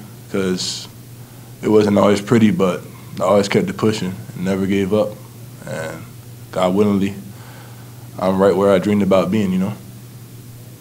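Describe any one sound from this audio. A young man speaks calmly into a microphone close by.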